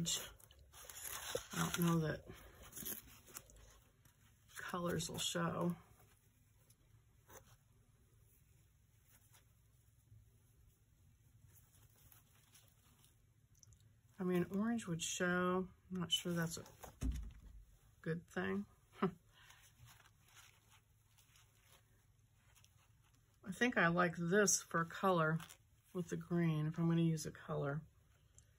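Sheer netting rustles softly as hands unroll and fold it.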